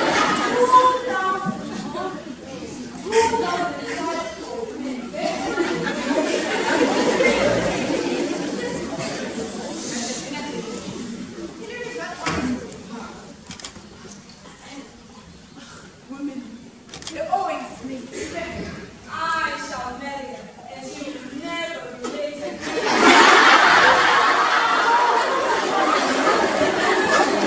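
Several young people speak in turn from a distance in an echoing hall.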